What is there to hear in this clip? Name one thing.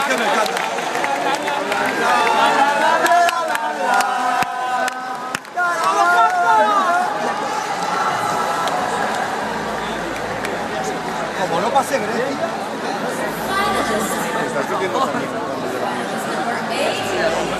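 A large crowd cheers and sings loudly in a big echoing arena.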